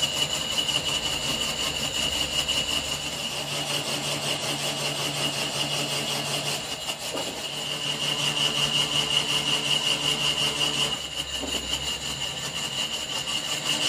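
A cutting tool scrapes against spinning metal with a high, steady whine.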